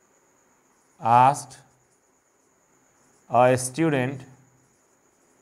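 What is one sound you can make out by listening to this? A man speaks in short phrases close by.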